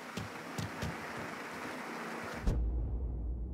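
Footsteps thud on pavement outdoors.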